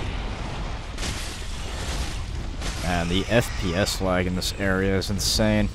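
A large beast snarls and growls.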